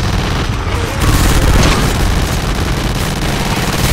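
A deep rumble of explosions booms below.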